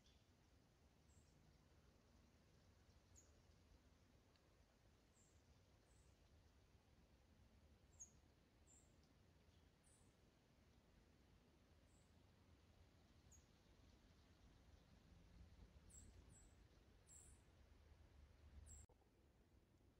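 Wind blows through rustling tree leaves outdoors.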